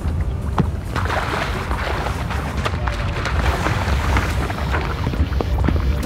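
Water splashes against a boat's side.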